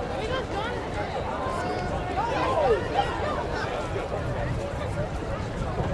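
Several young people chatter nearby outdoors.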